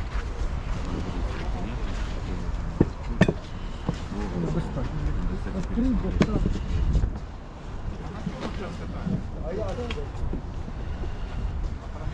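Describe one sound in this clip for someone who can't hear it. A man talks with animation close by.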